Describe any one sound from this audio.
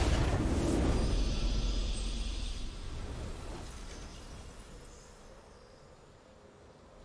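A triumphant game victory sound rings out and slowly fades.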